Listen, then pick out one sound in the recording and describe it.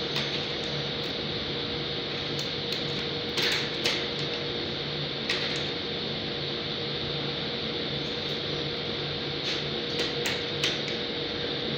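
Fingers tap and knock on a drawer front.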